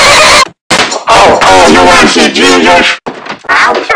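A man screams loudly and harshly.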